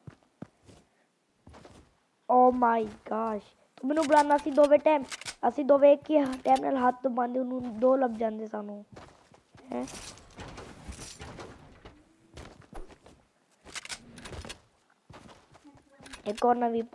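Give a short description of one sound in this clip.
Quick footsteps patter on hard ground.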